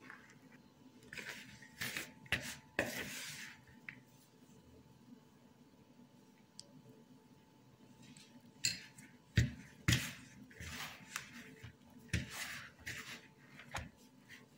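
Hands knead sticky dough in a plastic bowl.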